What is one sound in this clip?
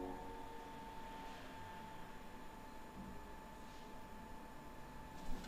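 A young woman sings softly into a microphone, heard through a recording.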